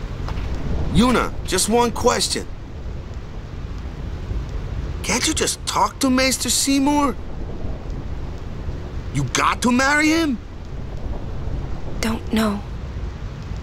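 A young man speaks in a questioning, friendly tone.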